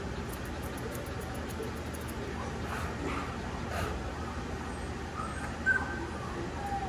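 Hands rustle softly through a dog's thick fur.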